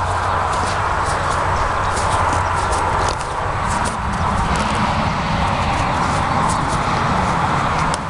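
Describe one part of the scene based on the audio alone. A horse's tail swishes through the air.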